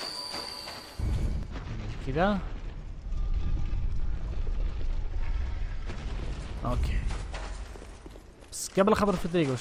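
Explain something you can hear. A heavy stone door grinds and rumbles open.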